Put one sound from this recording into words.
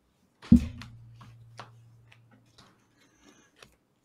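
Playing cards rustle as they are shuffled.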